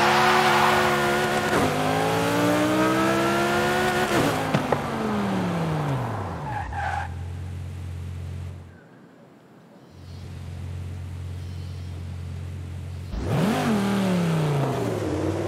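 A sports car engine roars and revs up through the gears.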